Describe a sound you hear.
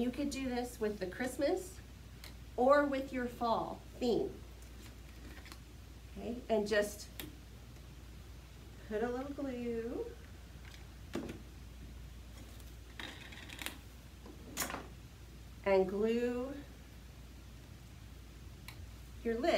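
A middle-aged woman talks calmly to the listener.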